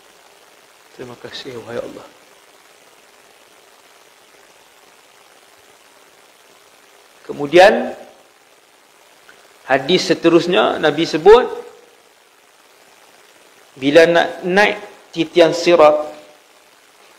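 A man speaks calmly into a clip-on microphone, in short bursts with pauses.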